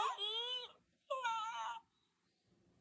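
A plush toy plays a high, chirpy electronic voice sound twice.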